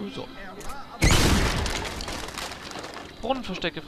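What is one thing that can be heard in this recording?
A bomb explodes with a loud boom that slowly fades.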